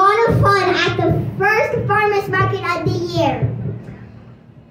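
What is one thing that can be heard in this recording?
A young girl sings close into a microphone.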